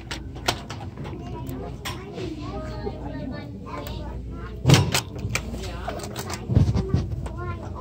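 Hard plastic clicks and knocks as it is handled close by.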